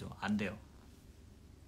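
A young man speaks briefly and softly close to a microphone.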